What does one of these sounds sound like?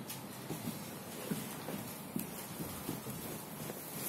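Bare feet patter on a hard floor as a boy runs.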